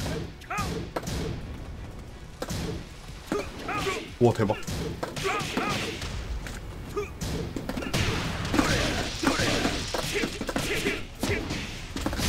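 Punches and kicks land with sharp thuds and smacks in a video game fight.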